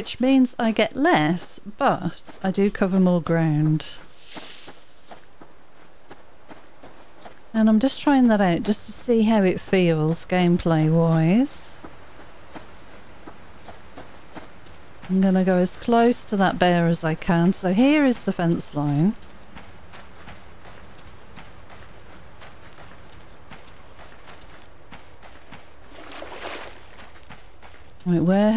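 Footsteps crunch on grass and dry ground.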